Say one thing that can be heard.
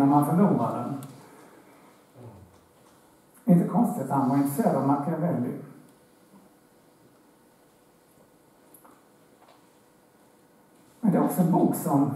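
A man speaks calmly through a headset microphone, with pauses between phrases.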